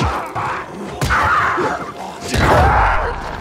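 A weapon strikes a creature with heavy thuds.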